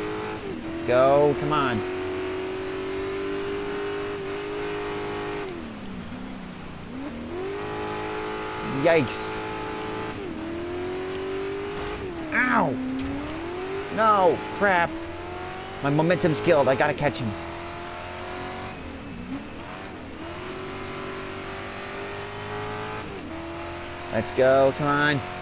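A racing buggy's engine drones and revs up and down as it shifts gears.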